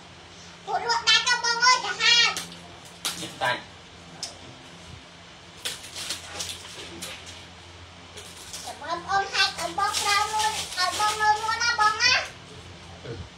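A young child speaks loudly and excitedly close by.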